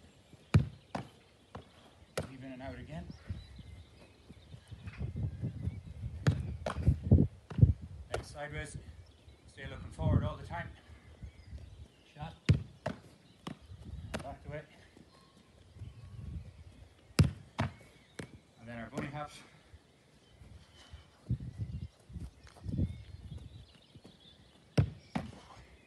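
A football thuds as it is kicked and caught.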